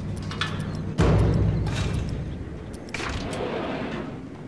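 An elevator door rumbles as it slides open.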